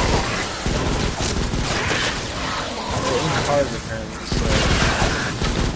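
A rifle fires rapid crackling energy bursts.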